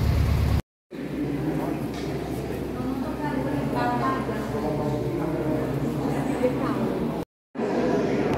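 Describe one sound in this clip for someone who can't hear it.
An electric keyboard plays a melody in an echoing hall.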